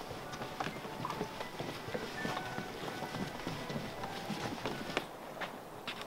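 Footsteps tread on a wooden boardwalk outdoors.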